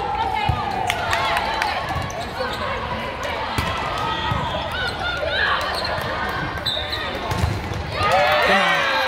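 Young women call out to each other across a large echoing gym.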